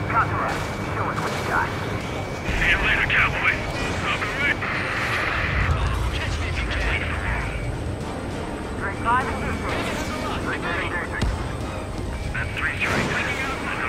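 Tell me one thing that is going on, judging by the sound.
A cannon fires rapid bursts.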